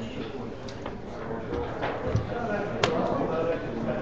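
Dice clatter as they are rolled onto a board.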